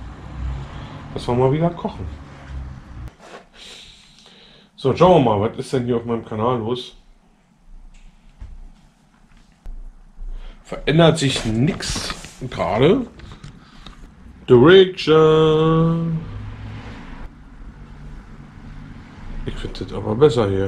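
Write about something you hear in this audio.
A man talks calmly and close by, in pauses.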